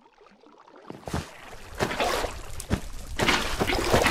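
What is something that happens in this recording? Water splashes as it is poured out.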